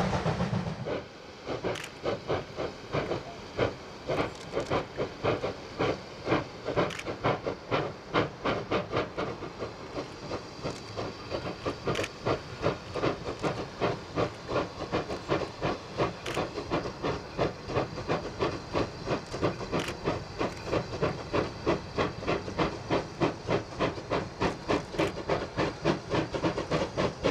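A steam locomotive chuffs hard in rapid, steady beats, heard across open country.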